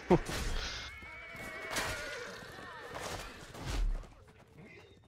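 Swords clash and strike in a battle.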